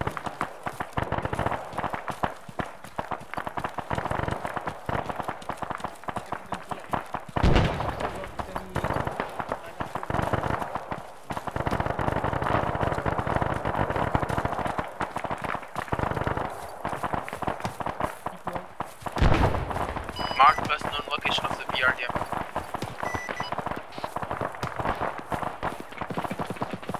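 Footsteps swish and crunch through dry grass.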